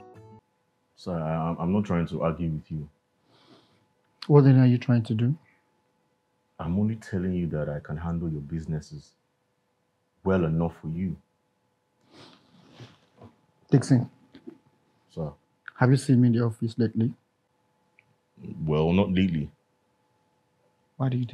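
A second man answers calmly nearby.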